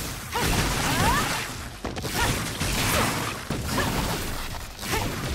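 Energy blasts crackle and whoosh in rapid bursts.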